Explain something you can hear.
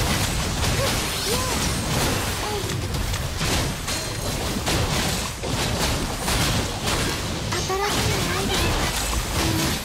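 Sword slashes and energy blasts hit in quick bursts.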